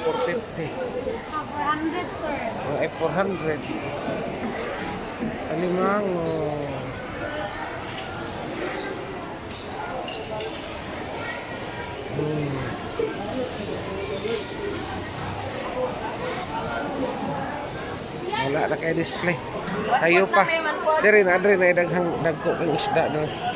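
A crowd of men and women chatters nearby in a busy, echoing hall.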